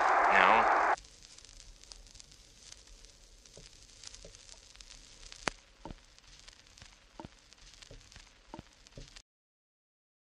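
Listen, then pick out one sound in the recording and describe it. A vinyl record crackles and pops between songs.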